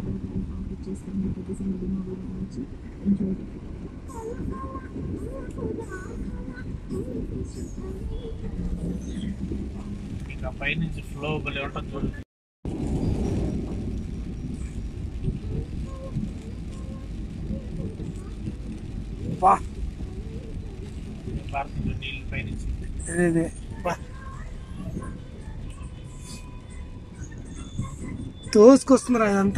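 Rain patters steadily on a car's windows.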